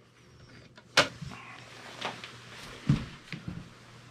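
A metal bucket handle clanks against a plastic bucket.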